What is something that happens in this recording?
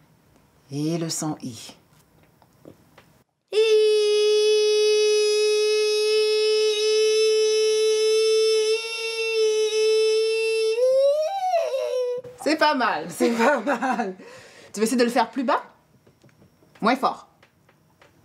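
A woman speaks gently and encouragingly up close.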